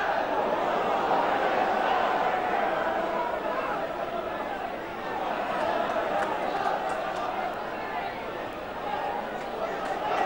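A large stadium crowd roars steadily outdoors.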